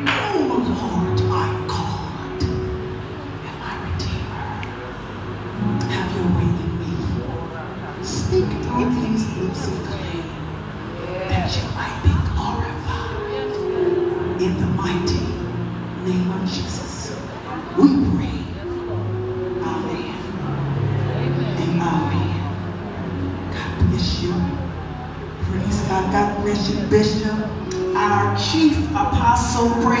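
A woman speaks with feeling into a microphone over loudspeakers in an echoing hall.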